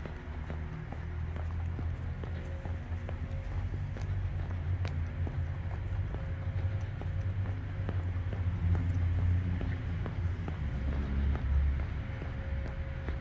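Footsteps tap steadily on pavement.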